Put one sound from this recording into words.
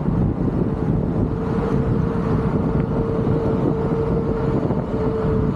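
Wind buffets loudly past outdoors.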